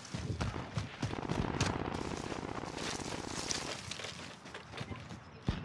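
Footsteps crunch through dry grass at a steady pace.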